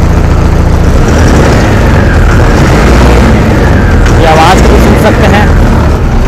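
A tractor engine rumbles more heavily as the tractor drives off.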